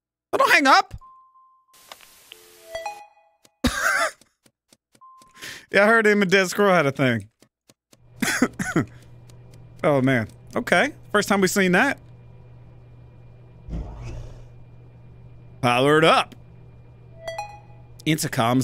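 Short electronic beeps and chimes sound from a game.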